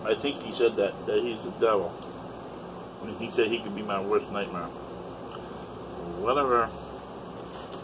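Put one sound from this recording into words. A middle-aged man talks close by.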